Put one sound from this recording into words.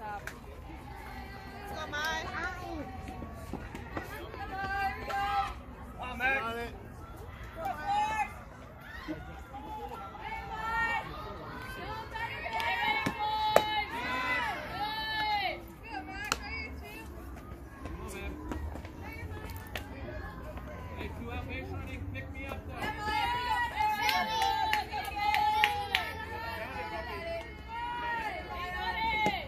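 Young girls cheer and chant loudly outdoors.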